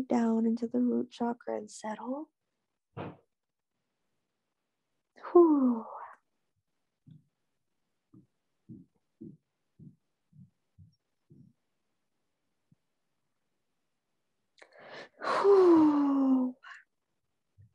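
A young woman speaks softly close to a microphone.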